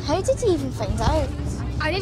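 A girl speaks calmly.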